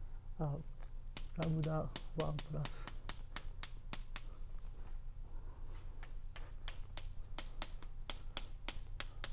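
Chalk taps and scrapes on a blackboard in quick, sharp clicks.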